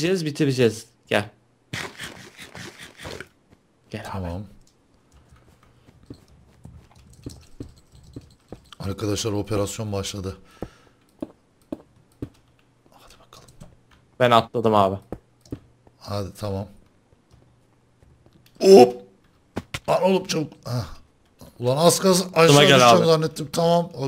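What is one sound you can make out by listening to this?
A young man talks animatedly into a microphone, close by.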